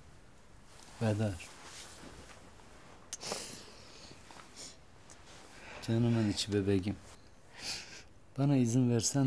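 A woman speaks softly and tenderly close by.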